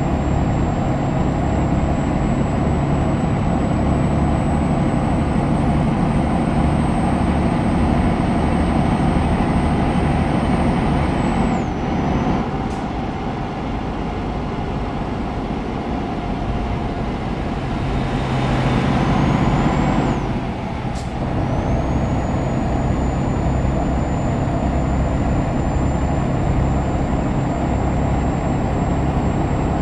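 A truck engine drones steadily while driving on a motorway.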